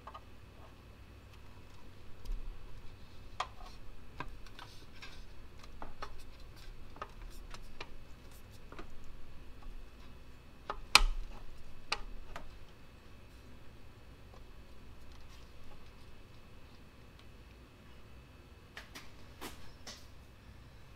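A plastic panel knocks and clicks against metal.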